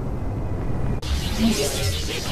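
A loud rushing whoosh sweeps past.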